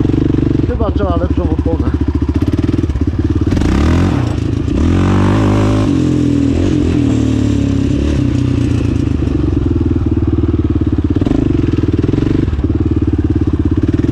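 A quad bike engine roars loudly up close, revving up and down.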